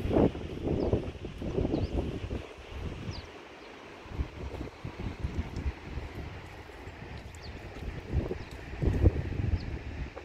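Wind gusts outdoors and buffets the microphone.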